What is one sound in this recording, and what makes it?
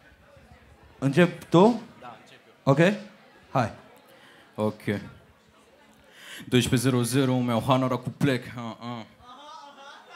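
A man raps forcefully through a microphone in a large echoing room.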